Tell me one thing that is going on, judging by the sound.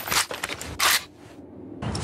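Metal clicks and clacks as a pistol is reloaded.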